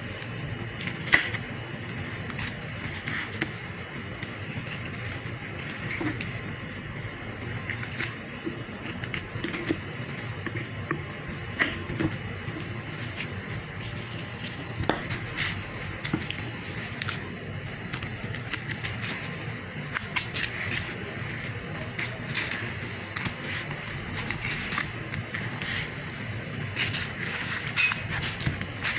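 A knife cuts and scrapes through raw meat.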